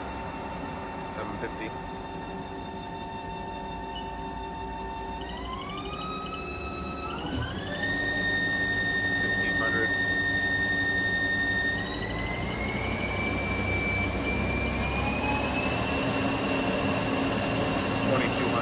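A lathe spindle whines steadily, its pitch rising in steps as it speeds up.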